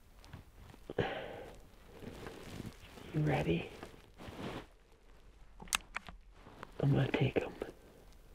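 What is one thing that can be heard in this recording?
A man speaks quietly and closely in short bursts.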